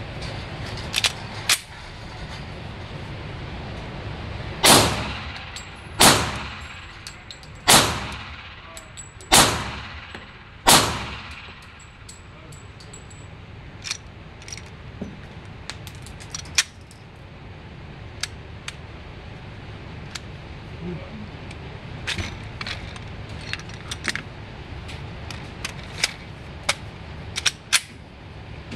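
A pistol's metal parts click and clack as it is handled and reloaded.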